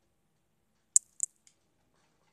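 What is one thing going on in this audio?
A game sound effect clicks sharply as ammunition is picked up.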